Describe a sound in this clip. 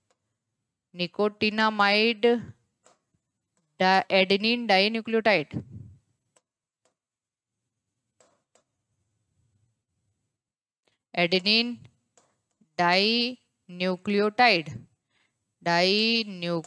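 A woman speaks clearly into a close microphone, explaining in short bursts with pauses.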